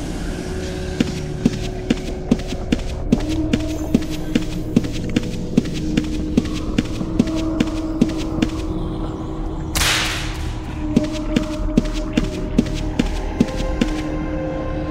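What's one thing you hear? Heavy footsteps thud at an even pace.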